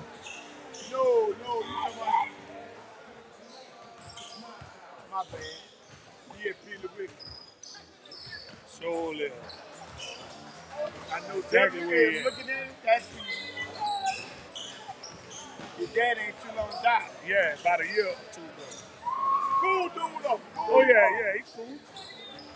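Young men talk and call out across a large echoing gym.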